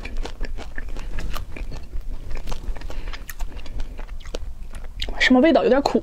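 A young woman chews wetly and smacks her lips close to a microphone.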